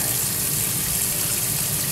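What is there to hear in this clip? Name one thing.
Gloved hands squelch through wet fish innards.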